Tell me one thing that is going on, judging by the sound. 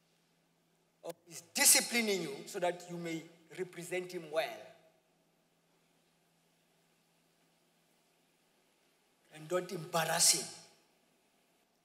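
A young man speaks with animation through a microphone in a large hall.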